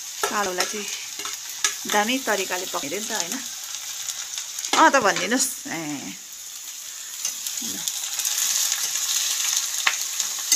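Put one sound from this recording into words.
A metal spoon scrapes against a pan.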